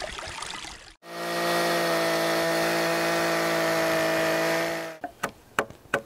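A chainsaw runs at a steady high whine.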